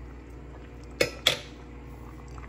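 A spatula knocks against a pot.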